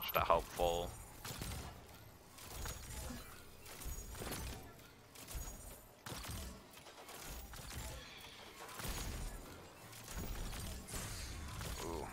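Gunfire cracks in quick bursts.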